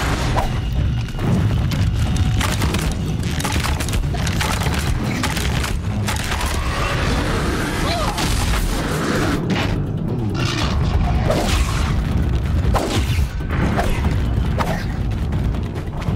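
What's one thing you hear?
A large machine creature stomps and clanks nearby.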